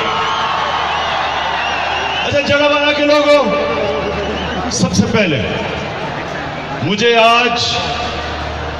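A huge crowd cheers and roars outdoors.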